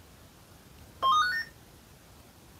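A radio gives a short rising electronic beep.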